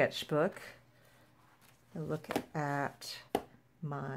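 A paper notebook closes with a soft thump.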